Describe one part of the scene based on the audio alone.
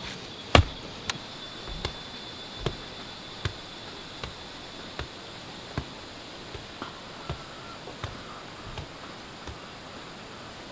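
A wooden pole thumps down on soil again and again.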